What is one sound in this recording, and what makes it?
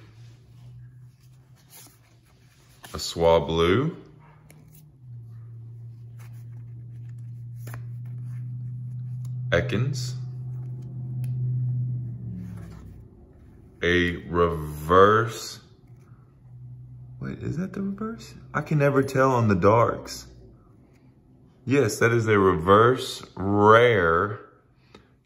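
Trading cards slide and rustle softly against each other in someone's hands.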